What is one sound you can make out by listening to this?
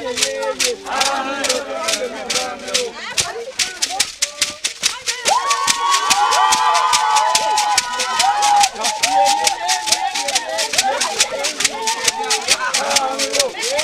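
Men beat gourd drums in a fast, steady rhythm.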